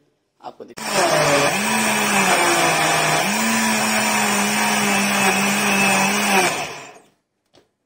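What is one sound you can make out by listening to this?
A blender motor whirs loudly with a steady hum.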